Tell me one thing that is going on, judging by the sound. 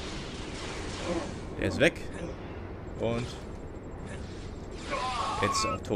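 A lightsaber hums and swooshes.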